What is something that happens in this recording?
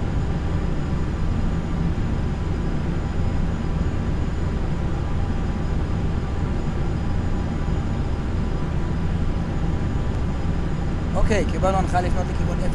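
Jet engines drone steadily and low.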